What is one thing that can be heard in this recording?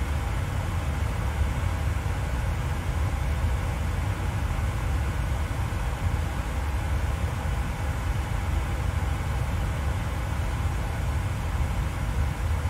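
A steady low engine drone hums.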